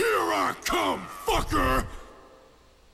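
A man snarls a taunt loudly and harshly.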